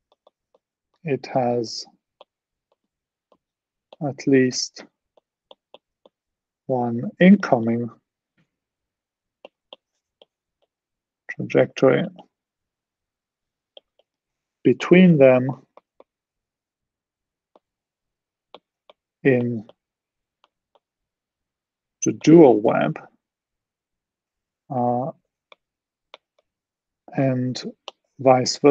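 A man speaks calmly in short phrases with pauses, heard through an online call.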